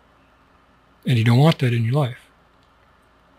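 A middle-aged man speaks briefly and expressively into a close microphone.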